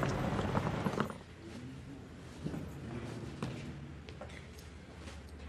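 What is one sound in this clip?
Footsteps tread across a hard floor indoors.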